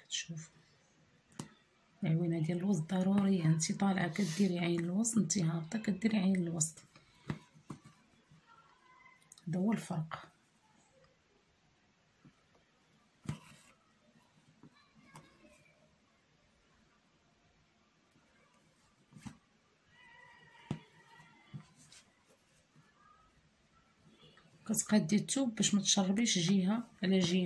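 Thread rustles softly as it is pulled through cloth.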